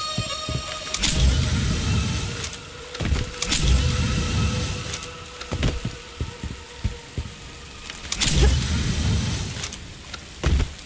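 A grappling cable fires and whooshes through the air.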